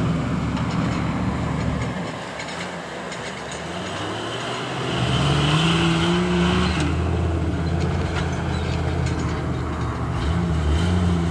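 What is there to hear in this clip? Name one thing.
An off-road vehicle's engine rumbles and revs as it climbs over obstacles.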